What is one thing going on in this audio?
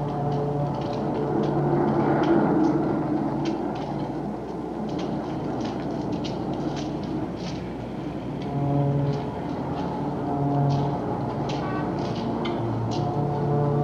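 Footsteps clatter on metal steps.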